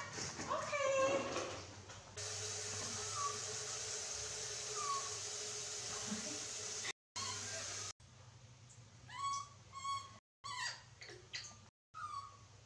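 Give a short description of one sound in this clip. Baby monkeys squeak with high, shrill chirps, close by.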